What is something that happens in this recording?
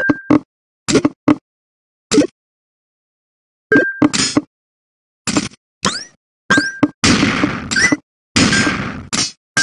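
Game sound effects click and chime in quick bursts.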